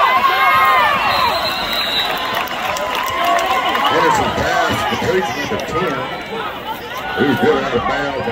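A crowd of young men shouts and cheers nearby, outdoors.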